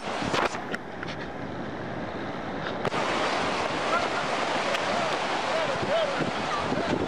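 Muddy floodwater rushes and churns loudly.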